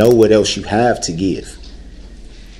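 A man speaks loudly and with emotion.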